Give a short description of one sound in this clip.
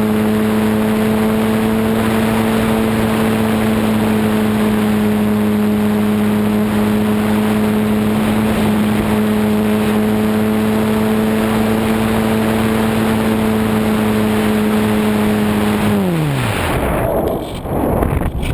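A small electric motor whines steadily, then winds down and stops.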